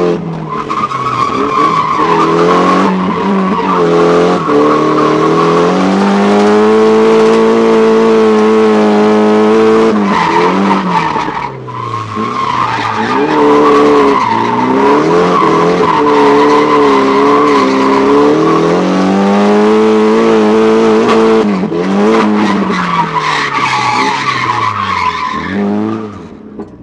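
A car engine revs hard and roars up and down in pitch from inside the car.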